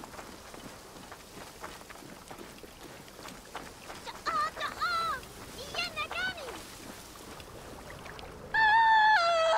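Footsteps crunch quickly on a sandy dirt path.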